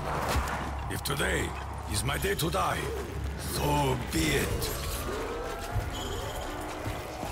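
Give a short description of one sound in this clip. Zombies growl and groan nearby.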